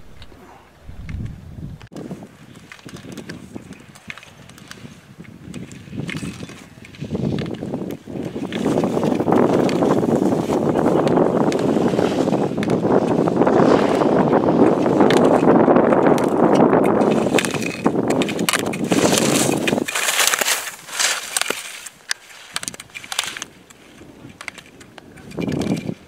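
Skis carve and scrape across hard snow, growing louder up close.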